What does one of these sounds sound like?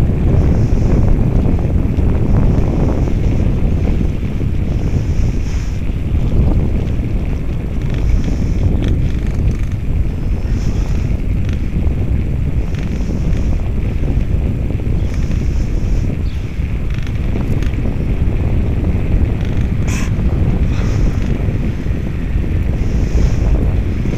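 Bicycle tyres roll steadily on asphalt.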